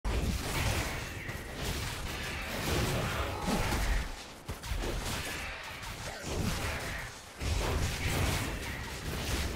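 Game characters clash with magic and weapon sound effects.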